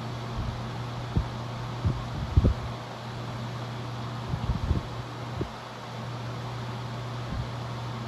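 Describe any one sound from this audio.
Electric fans whir with a steady low hum close by.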